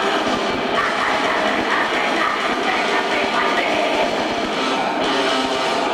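A rock band plays loudly and distorted.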